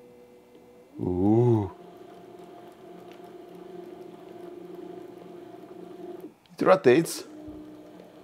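A small electric motor whines in short bursts, its pitch sweeping up and down.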